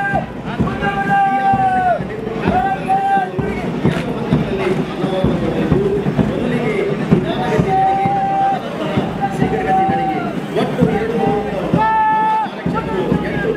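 Boots stamp in unison on hard ground as a squad marches.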